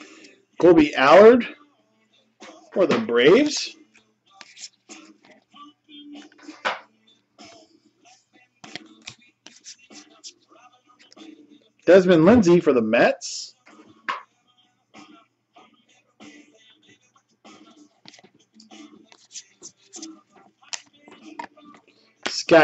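Stiff cards rustle and slide against each other in hands.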